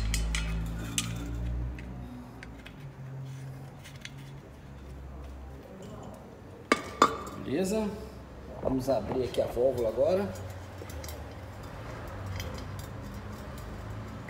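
A metal fitting clicks and taps as hands tighten it.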